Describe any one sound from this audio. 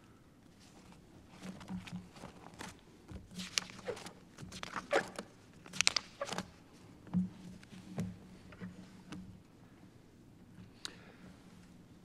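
Papers rustle and tap on a desk.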